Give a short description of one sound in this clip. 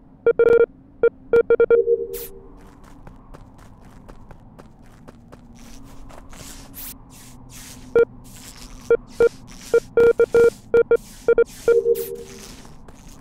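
Short electronic beeps chime in quick bursts.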